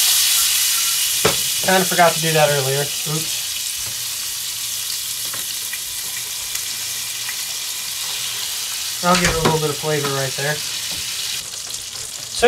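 Fish sizzles in hot oil in a frying pan.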